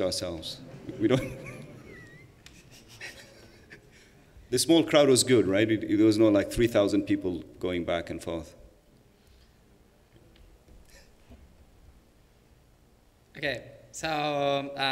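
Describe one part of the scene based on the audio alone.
A man speaks calmly through a microphone in a large hall, with pauses.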